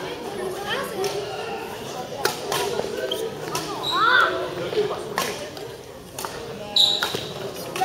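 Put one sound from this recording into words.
Young people chatter in a large echoing hall.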